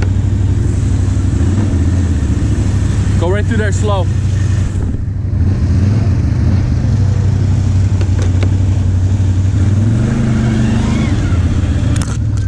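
An all-terrain vehicle engine rumbles steadily up close.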